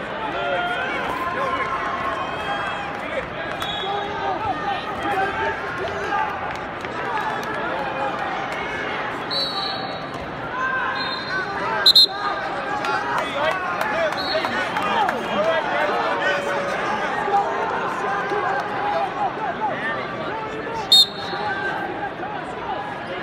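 A large crowd of spectators shouts and cheers in a large echoing arena.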